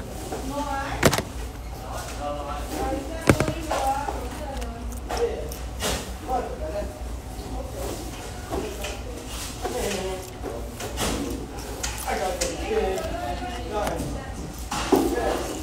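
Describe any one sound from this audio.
A young man talks quietly nearby.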